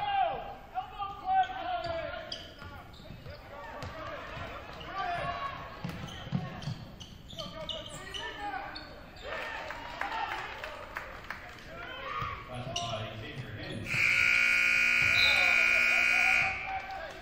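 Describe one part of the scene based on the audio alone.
A crowd of spectators murmurs and calls out in a large echoing gym.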